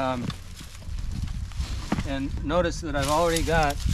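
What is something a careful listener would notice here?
A rope rustles as it is handled.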